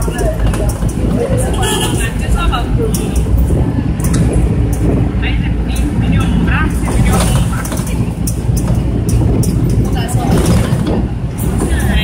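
Vehicles pass close by on a busy street.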